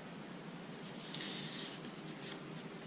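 A sheet of paper rustles briefly as it is handled.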